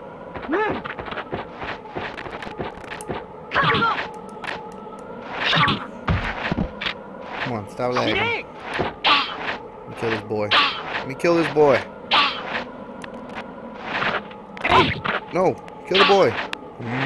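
Swords clash and clang in quick, sharp strikes.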